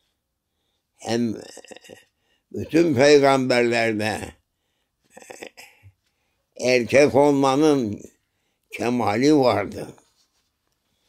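An elderly man speaks slowly and expressively, close by, in short bursts with pauses.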